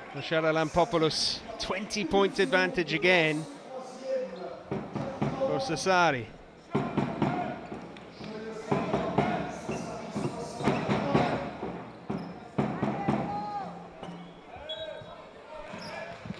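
A crowd chants and cheers in a large echoing arena.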